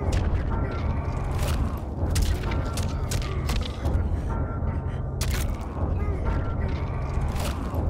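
A bone crunches wetly.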